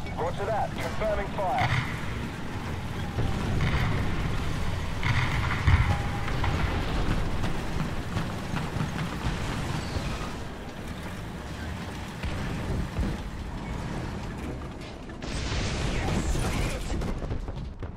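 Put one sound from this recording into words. A tank engine rumbles as the tank drives along.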